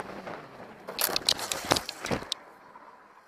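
A motorcycle crashes and scrapes along the road.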